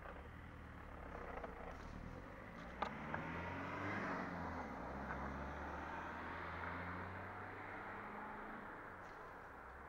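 A car drives past on a nearby road.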